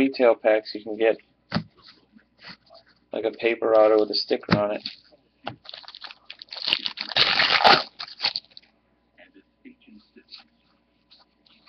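Trading cards shuffle and flick through hands.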